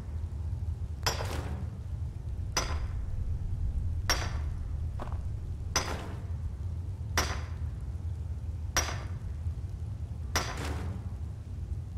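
A pickaxe strikes rock with sharp, ringing clanks at a steady pace.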